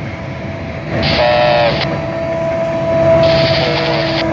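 A train horn sounds loudly.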